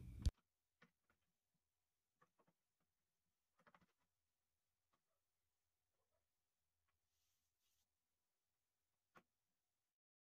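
A wooden stick knocks lightly against a wooden frame.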